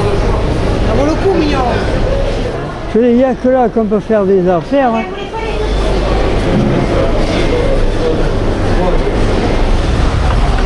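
A crowd murmurs.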